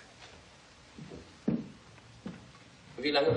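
Footsteps walk across a hard floor and fade away.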